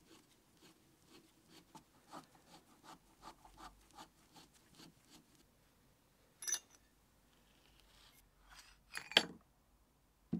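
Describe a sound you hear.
Metal parts clink and knock on a bench.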